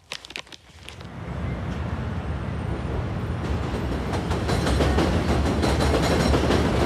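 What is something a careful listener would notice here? Traffic rumbles steadily along a busy city street.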